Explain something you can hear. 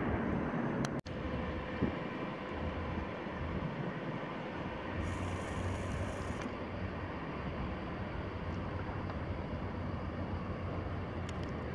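A jet airliner rumbles steadily as it comes in to land.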